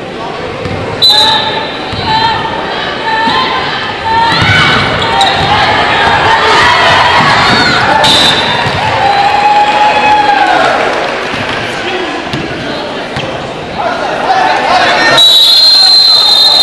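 A crowd in a large echoing gym cheers and shouts.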